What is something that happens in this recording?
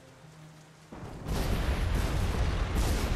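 A huge explosion booms and roars.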